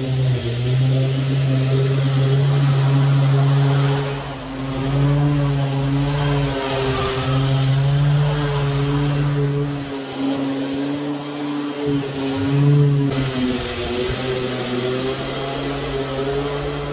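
A petrol lawn mower engine drones steadily close by.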